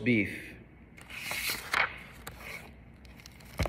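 Pages rustle as a book is leafed through.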